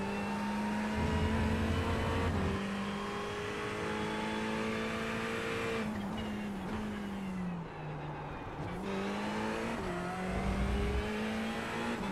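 Tyres rumble loudly over a kerb.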